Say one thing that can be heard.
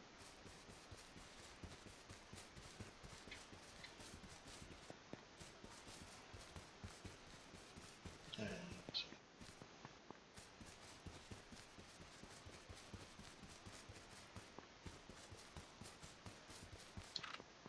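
Footsteps pad quickly and steadily over grass.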